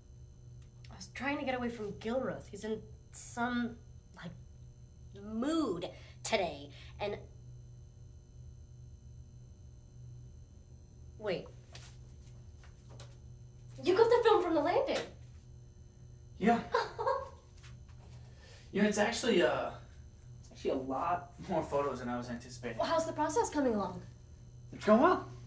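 A young woman talks nearby with animation.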